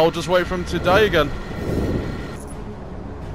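A crackling energy blast whooshes past.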